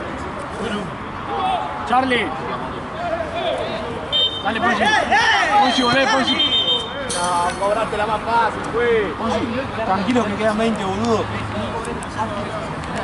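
Young men shout and call out outdoors.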